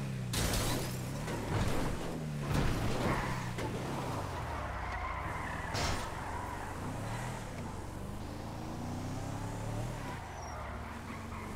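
A car engine hums and revs as it drives along.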